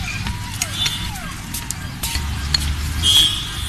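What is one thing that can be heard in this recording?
Cutlery and dishes clink nearby.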